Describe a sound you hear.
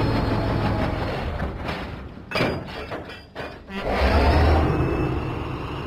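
Wagon wheels clatter on rails.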